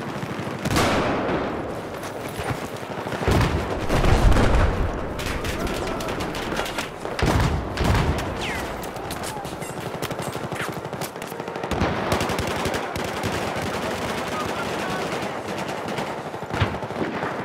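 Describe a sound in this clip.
Rapid gunfire crackles and echoes nearby.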